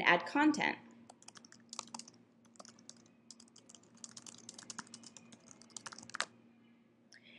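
Keyboard keys click quickly and lightly as someone types.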